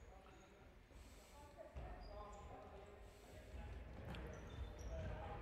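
Sneakers squeak sharply on a hard indoor floor.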